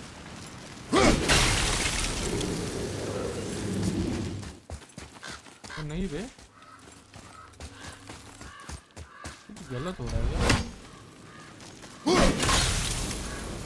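An axe strikes with a loud, heavy crash and a whooshing burst.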